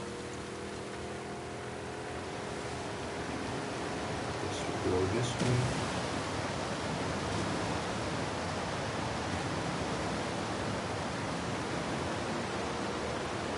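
Water churns and splashes around a speeding boat.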